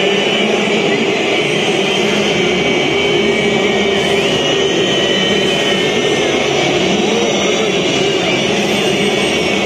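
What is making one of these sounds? A huge stadium crowd chants and sings loudly in unison.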